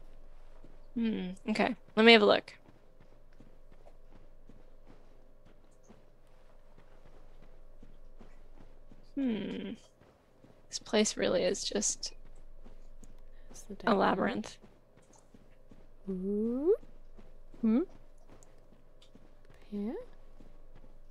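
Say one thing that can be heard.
A young woman talks with animation through a microphone, in short bursts.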